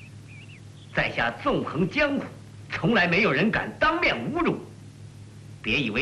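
A young man speaks angrily and forcefully.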